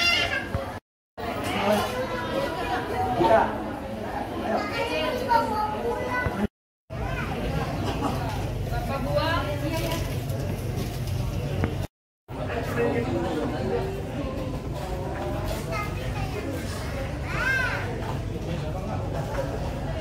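Many women and children chatter in a busy, echoing room.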